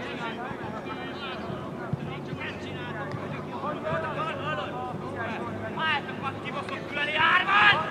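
Young men shout and call out to each other across an open outdoor field.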